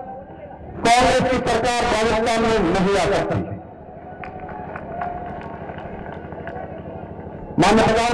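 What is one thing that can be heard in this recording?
A man speaks forcefully into a microphone over loudspeakers, echoing outdoors.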